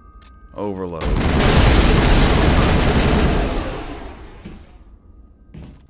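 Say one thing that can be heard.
A loud blast roars and slowly dies away.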